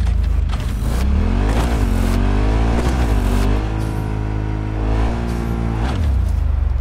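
A motorbike engine revs up and down.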